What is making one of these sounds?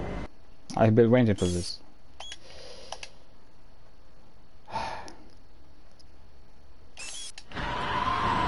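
Menu beeps and clicks sound briefly.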